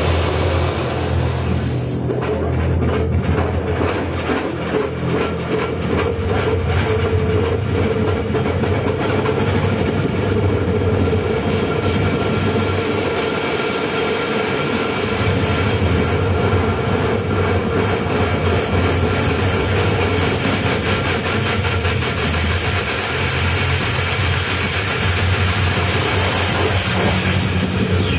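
Low electronic bass tones pulse on and off.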